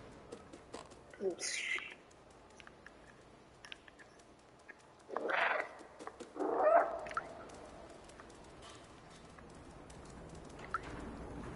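A cat's paws patter softly on the ground.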